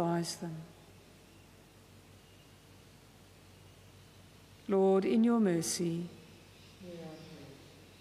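An elderly woman sings or chants slowly into a microphone, in a reverberant hall.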